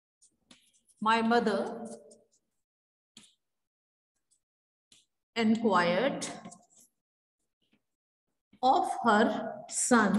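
A young woman speaks clearly and calmly, close by, in short phrases.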